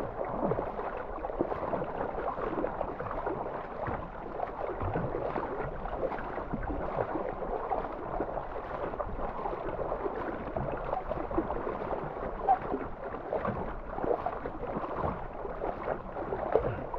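A kayak paddle splashes rhythmically through the water.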